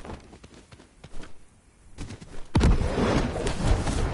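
Wings flap and whoosh in the wind.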